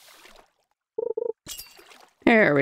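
A bright game alert chimes when a fish bites.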